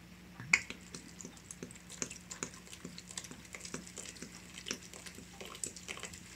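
Beer glugs and splashes as it is poured into a pot of food.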